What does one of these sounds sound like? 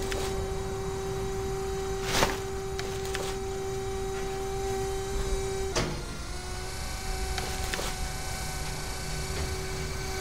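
Garbage bags thud into a wire cart.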